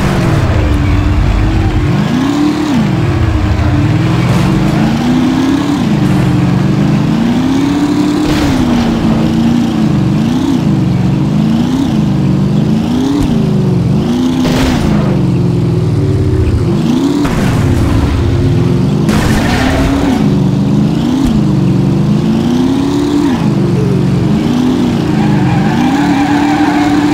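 A car engine revs up and down throughout.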